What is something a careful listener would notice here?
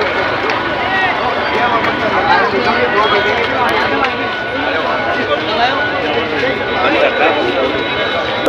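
A large crowd of men chatters and murmurs all around outdoors.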